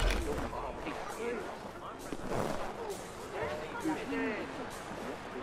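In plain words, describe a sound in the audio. Footsteps crunch on snowy cobblestones.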